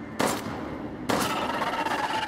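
A handgun fires loud shots in an echoing room.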